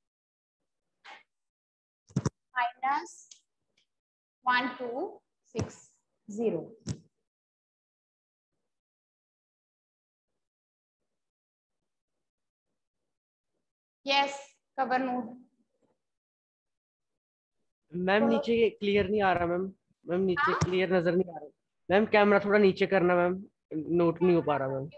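A young woman speaks calmly and clearly into a close microphone.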